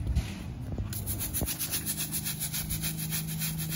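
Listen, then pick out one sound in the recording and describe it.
A stiff brush scrubs back and forth on paving stones.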